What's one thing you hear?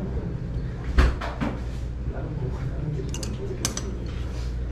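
Chopsticks clatter on a table.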